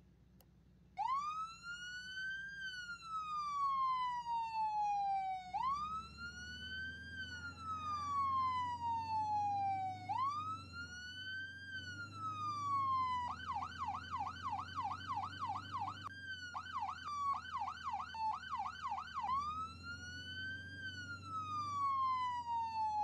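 An emergency vehicle siren wails, rising and falling, then switches to a fast yelping pattern.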